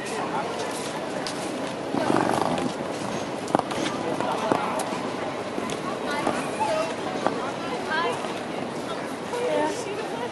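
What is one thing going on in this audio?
People chatter nearby.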